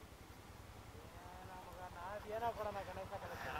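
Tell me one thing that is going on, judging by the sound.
A young man talks nearby.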